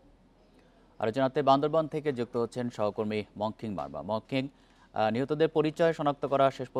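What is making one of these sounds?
A man speaks calmly and clearly into a microphone, reading out the news.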